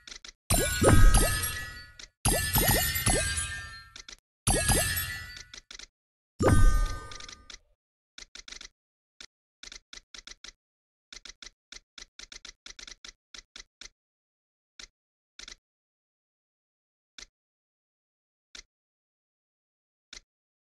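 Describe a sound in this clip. Game sound effects chime and pop as a worm eats food.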